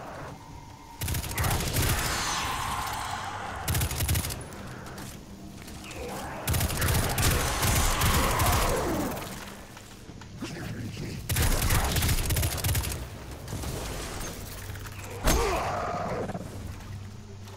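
A rifle fires in loud bursts that echo.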